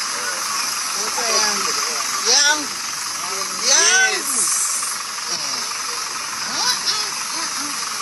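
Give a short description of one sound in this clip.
A woman cries out with joy close by.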